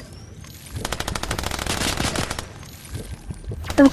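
A game character gulps down a drink in quick swallows.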